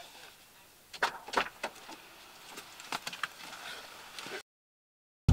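A car door clunks and clicks.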